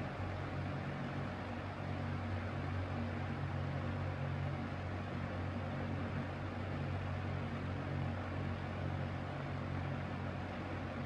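A box fan whirs steadily with a low motor hum and rushing air.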